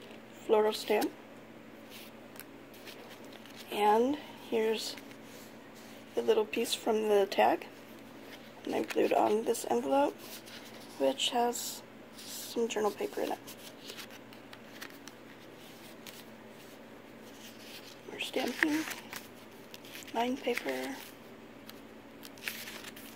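Stiff paper pages rustle and flap as they are turned.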